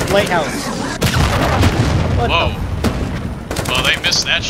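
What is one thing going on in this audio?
A loud explosion booms close by.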